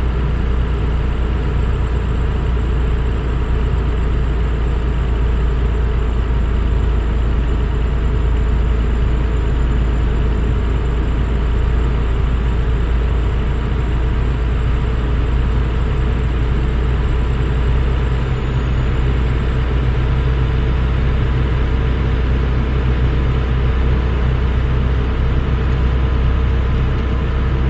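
A truck's diesel engine drones steadily at cruising speed.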